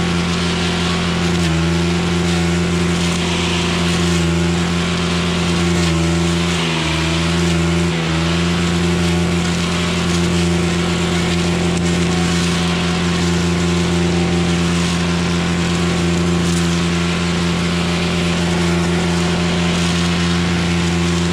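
A trimmer line whips and swishes through weeds and grass.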